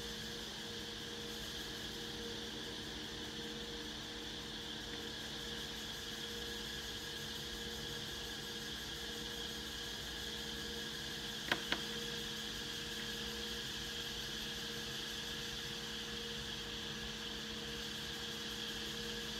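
An electric fan hums steadily.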